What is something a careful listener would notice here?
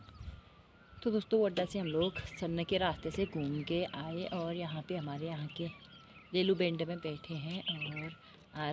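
A middle-aged woman speaks calmly and close to the microphone.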